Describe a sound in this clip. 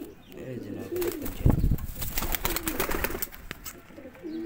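A pigeon's wings flap loudly as it flies off.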